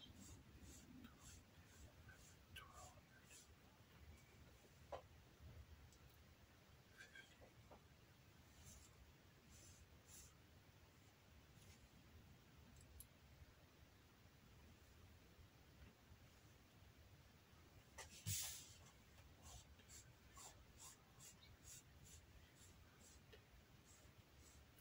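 A metal tool clicks and taps against leather.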